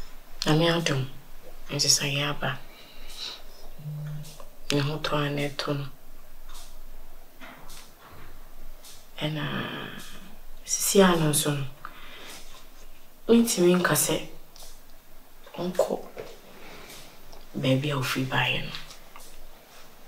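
A woman speaks with animation nearby.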